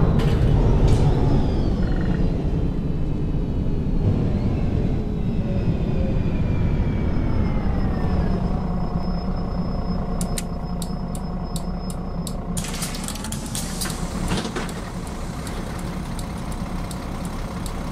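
A bus engine rumbles steadily and winds down as the bus slows to a stop.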